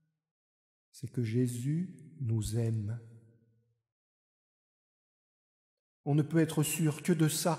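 A middle-aged man speaks calmly into a microphone in a reverberant hall.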